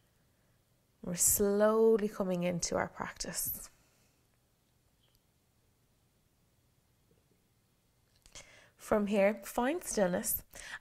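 A young woman speaks calmly and clearly.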